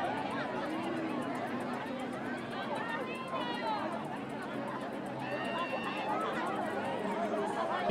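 A dense crowd of men and women chatters and calls out all around, close by.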